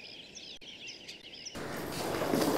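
Footsteps walk slowly along a paved path.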